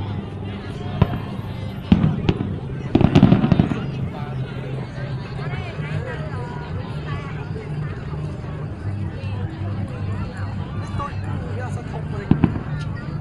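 Fireworks boom and crackle outdoors.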